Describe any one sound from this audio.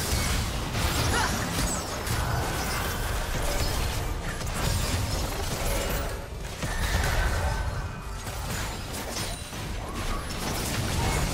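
Magic spells whoosh and crackle in a fast, busy fight.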